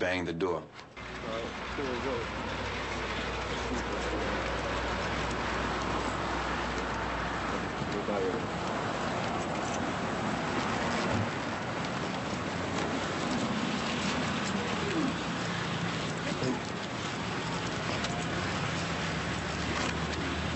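Footsteps walk along a pavement outdoors.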